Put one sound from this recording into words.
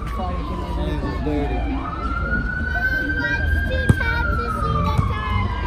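Children call out and chatter in the open air.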